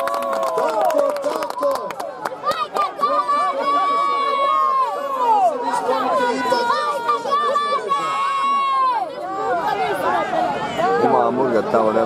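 A large crowd shouts and whistles outdoors.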